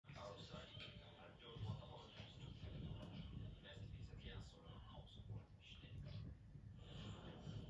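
A fire crackles and pops steadily.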